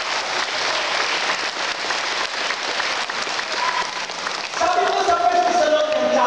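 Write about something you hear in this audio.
A crowd claps and cheers loudly in a large echoing hall.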